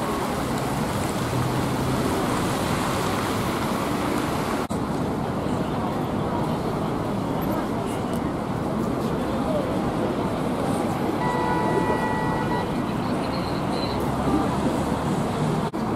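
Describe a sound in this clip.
A crowd of people murmurs outdoors.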